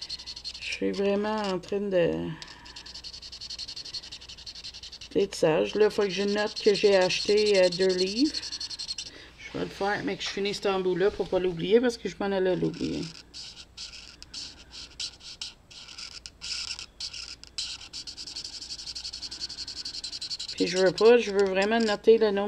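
A marker scratches softly across paper.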